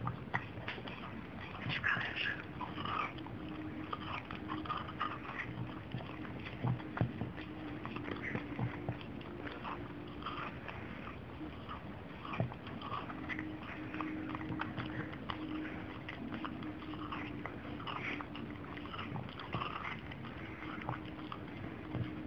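A dog licks and chews on an ice lolly with wet smacking sounds.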